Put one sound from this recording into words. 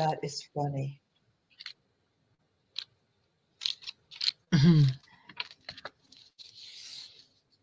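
Paper rustles as hands sort through it.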